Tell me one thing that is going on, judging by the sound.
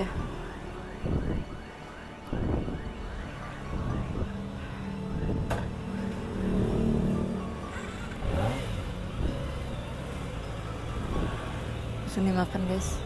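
A motorcycle engine revs up and down in short bursts.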